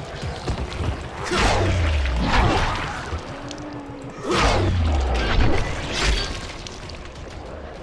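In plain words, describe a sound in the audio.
Heavy blows thud and slash in quick bursts.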